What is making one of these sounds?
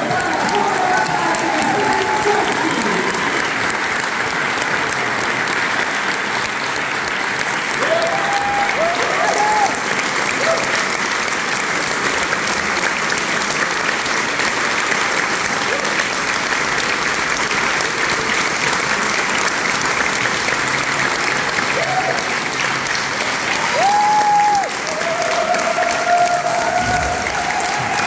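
People in a crowd cheer and whoop now and then.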